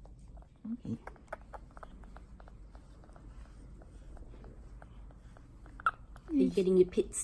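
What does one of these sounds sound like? A baby bat sucks on a teat with soft, quick smacking clicks.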